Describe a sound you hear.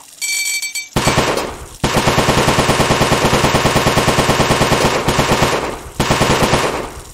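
A toilet flushes with a loud rush of water.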